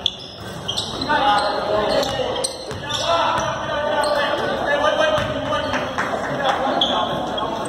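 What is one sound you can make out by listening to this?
Young men call out and chatter across the gym.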